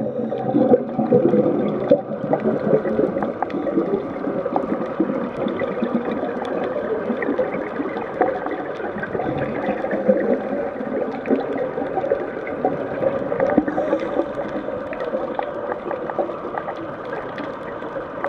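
Water rumbles, muffled and steady, underwater.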